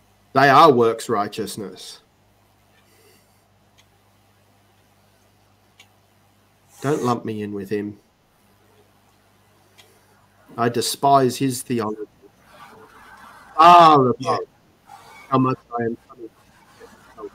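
A middle-aged man speaks calmly through a microphone, in short bursts with pauses.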